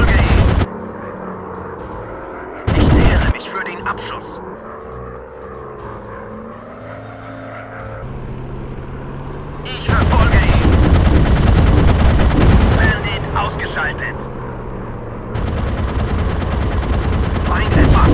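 Propeller engines drone steadily as planes fly overhead.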